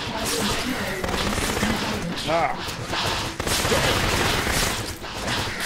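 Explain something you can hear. A plasma gun fires rapid bursts of shots.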